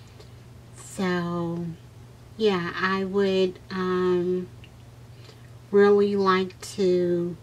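A woman speaks calmly and close up.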